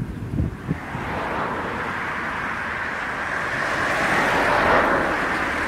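A jet airliner's engines roar as it approaches from a distance.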